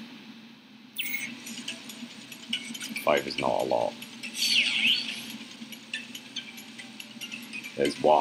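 Soft electronic game music plays.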